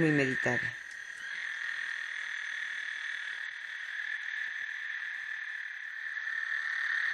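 Frogs call in a steady, shrill chorus.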